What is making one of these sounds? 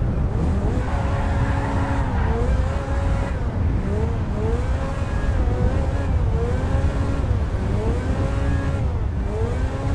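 A car engine revs up and drops as it shifts through the gears.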